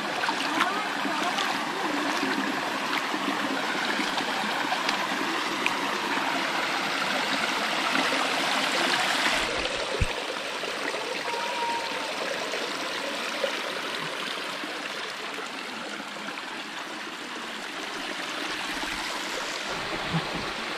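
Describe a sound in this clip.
A shallow stream trickles and babbles over rocks.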